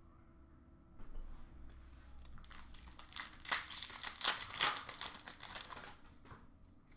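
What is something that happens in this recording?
Cardboard cards rustle and tap as a hand sorts through them.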